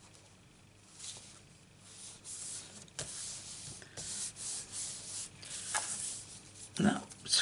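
Paper slides and rustles against a hard surface.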